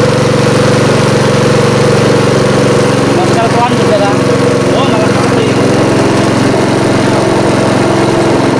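Muddy water gushes and splashes from a hose.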